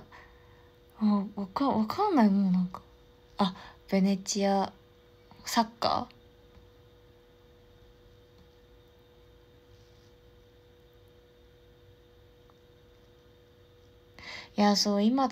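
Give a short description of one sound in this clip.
A young woman speaks softly and close up, in short bursts with long pauses.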